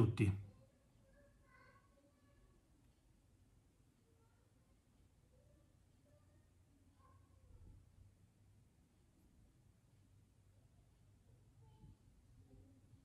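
A man speaks quietly and calmly, close to a microphone.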